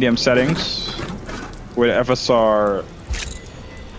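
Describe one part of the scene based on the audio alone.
A small metal cabinet door clicks open.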